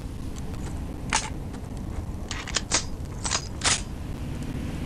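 Metal clicks as a rifle is reloaded.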